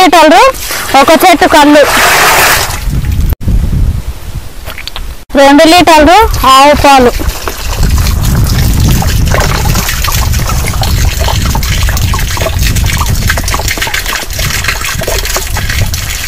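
Liquid pours and splashes into a plastic barrel.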